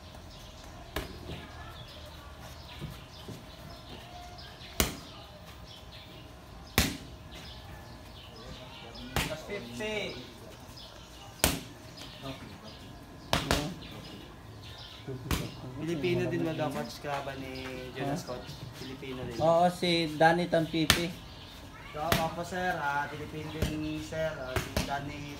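Boxing gloves thud against pads in sharp, scattered hits.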